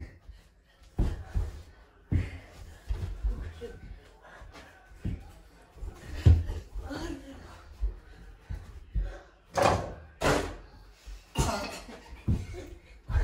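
A ball bounces on the floor.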